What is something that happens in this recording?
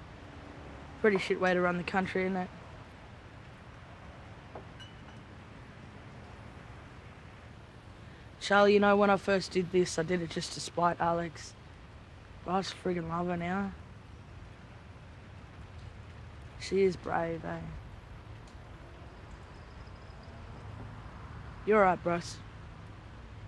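A young woman speaks calmly and quietly in short phrases nearby.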